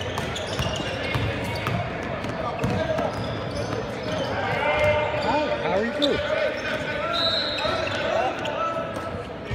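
Basketball sneakers squeak on a gym floor in a large echoing hall.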